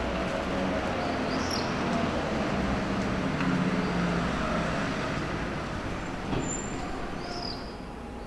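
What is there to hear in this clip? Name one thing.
A man's footsteps walk slowly along a stone street.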